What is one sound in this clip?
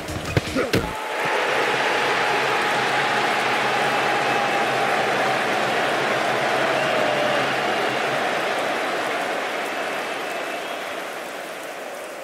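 A crowd roars and cheers after a goal in a video game.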